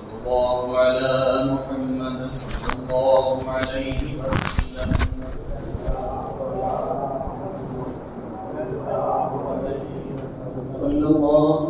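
A man recites in a melodic chanting voice through a microphone.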